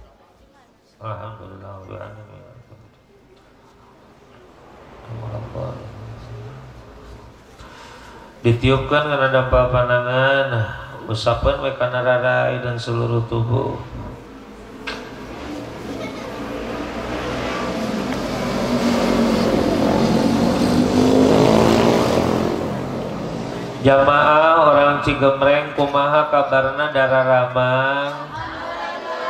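A man sings in a wavering chant through a loudspeaker microphone, with long pauses.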